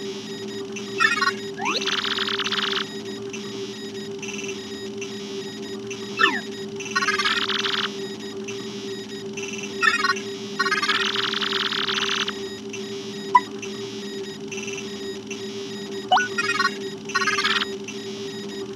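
Rapid electronic blips chatter in short bursts.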